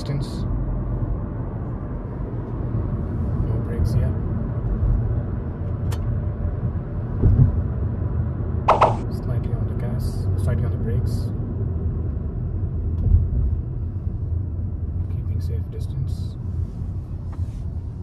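A car engine hums steadily with low road rumble from inside the car.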